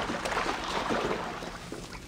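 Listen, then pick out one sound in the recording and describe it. Water splashes underfoot.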